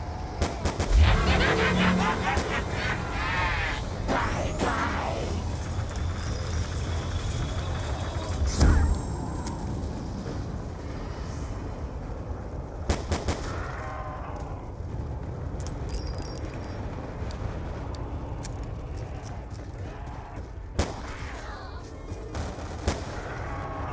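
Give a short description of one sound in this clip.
Pistol shots crack in a game.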